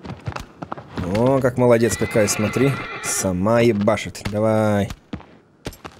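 A young man talks animatedly and loudly into a microphone, drawing out his words.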